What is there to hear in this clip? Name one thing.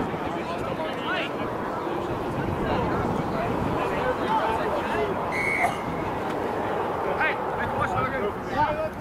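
Several men talk and call out across an open field.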